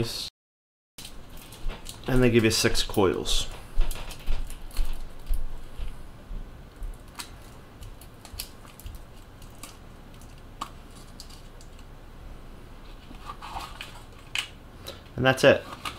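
Small metal parts click and tap against a hard case.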